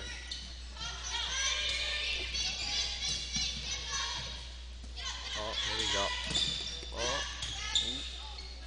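A small crowd chatters and cheers.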